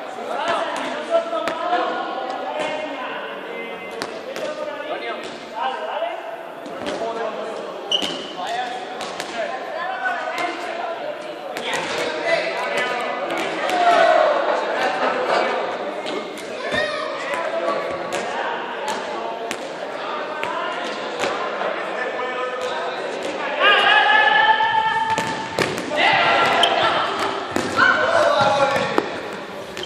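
Young men and boys chatter and call out in a large echoing hall.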